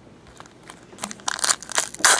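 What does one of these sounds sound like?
A foil wrapper crinkles loudly in someone's hands.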